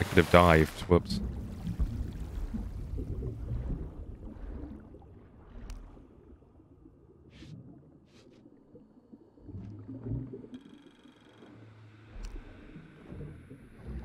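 Water swirls and gurgles in a muffled way underwater.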